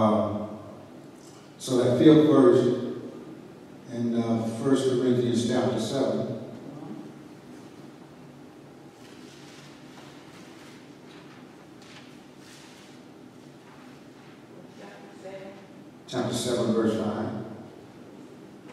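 A man speaks through a microphone in a large echoing hall, in bursts with long pauses.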